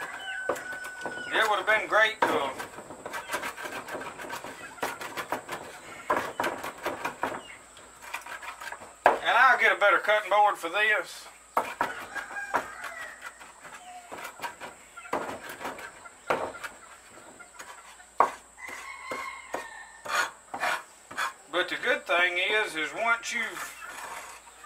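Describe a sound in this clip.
A knife chops rapidly against a wooden cutting board.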